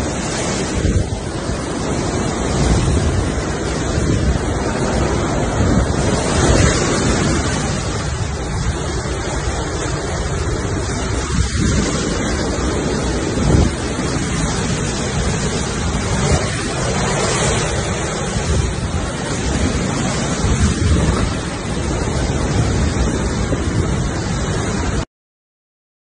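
Heavy rain pours down.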